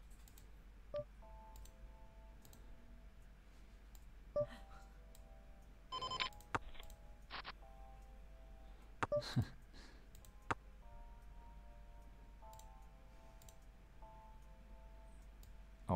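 Soft electronic chimes and beeps ring out from a card game.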